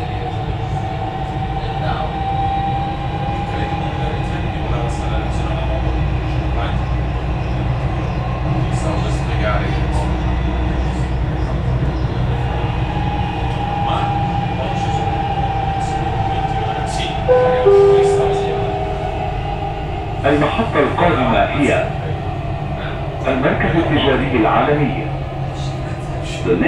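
A train hums and rumbles steadily along an elevated track.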